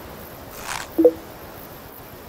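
A short electronic chime rings out as a game piece is placed.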